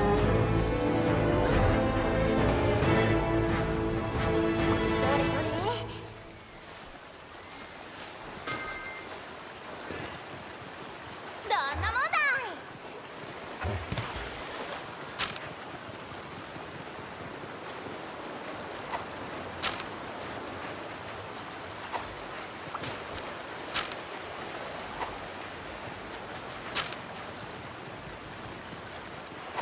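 Footsteps patter over rock and water.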